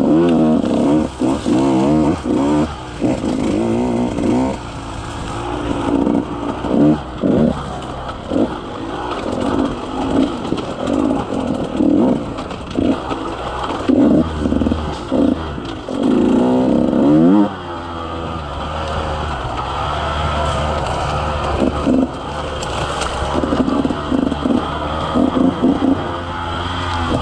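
Tyres crunch over dirt and twigs.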